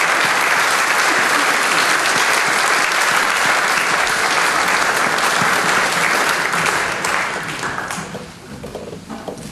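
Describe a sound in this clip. An audience applauds loudly in a large hall, then the applause dies away.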